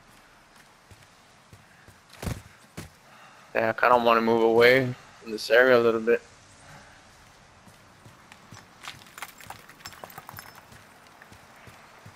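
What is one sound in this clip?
Footsteps crunch softly over dirt and grass.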